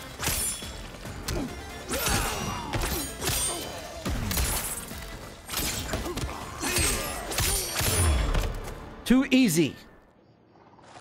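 Blows and sword strikes land with heavy thuds and clashes.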